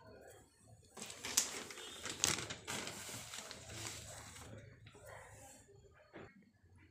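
A plastic bag crinkles and rustles loudly.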